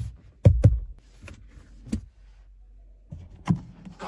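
An armrest lid clicks open.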